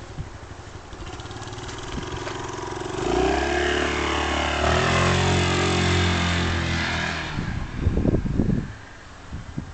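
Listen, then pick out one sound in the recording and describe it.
A motorcycle engine revs up loudly nearby and roars off down the street, fading into the distance.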